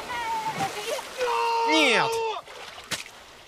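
A young man cries out in shock.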